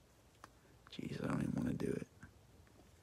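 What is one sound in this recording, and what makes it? A thin plastic sleeve crinkles as a card slides into it.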